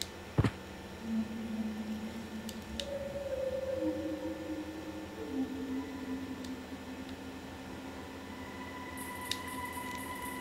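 Soft electronic tones play from a video game.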